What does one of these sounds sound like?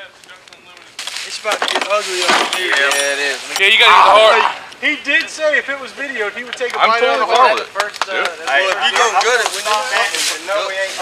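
Several men talk with animation close by.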